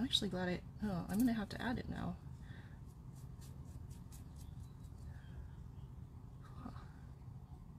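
A small paintbrush softly dabs and brushes against a carved surface.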